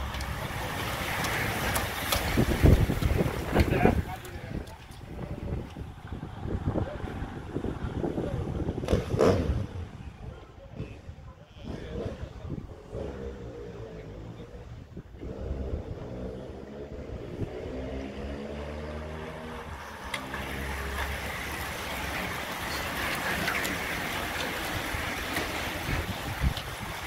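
A pack of racing bicycles whirs past close by.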